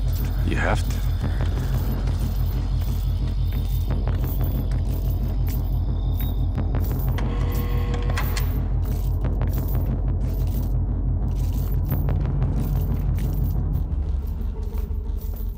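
Footsteps shuffle slowly along a hard floor.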